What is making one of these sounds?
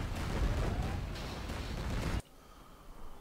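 Gunfire and explosions rumble from a battle.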